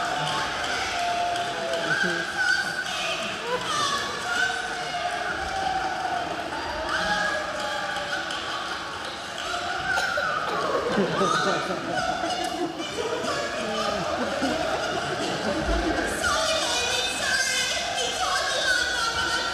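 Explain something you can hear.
A woman talks excitedly through loudspeakers in a large echoing hall.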